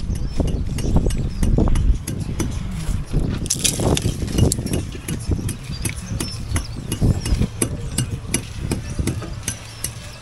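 Hands pull loose bricks and rubble from a wall, with scraping and knocking.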